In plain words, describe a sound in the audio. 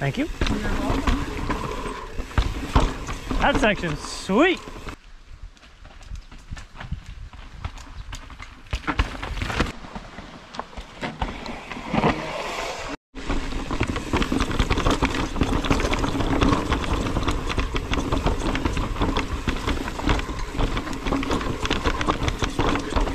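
Mountain bike tyres rattle and crunch over a rocky dirt trail.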